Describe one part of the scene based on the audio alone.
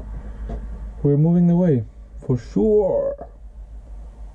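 A man speaks close by with animation, his voice drawn out and expressive.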